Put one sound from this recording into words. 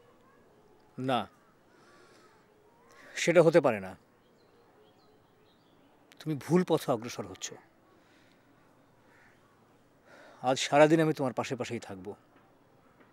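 A man speaks in a low, calm voice close by.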